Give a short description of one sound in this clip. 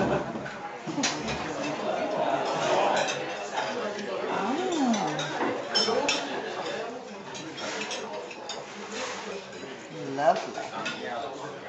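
Many voices chatter in the background.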